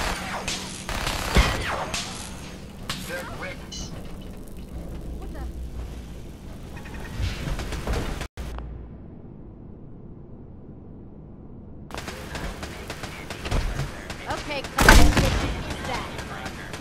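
Gunshots crack in loud bursts.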